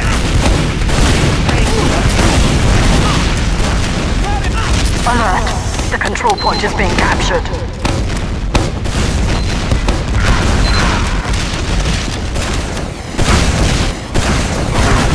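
Explosions boom repeatedly amid gunfire.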